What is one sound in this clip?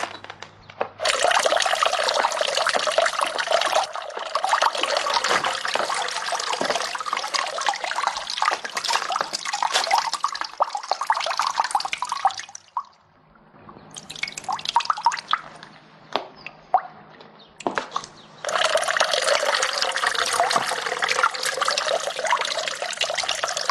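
Water pours from a spout and splashes into a stone basin.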